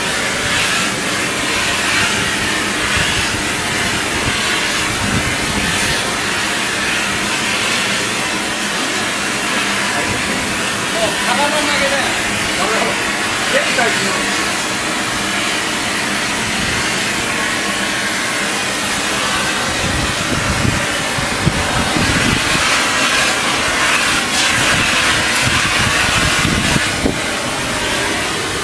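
A gas torch roars with a steady, loud rush.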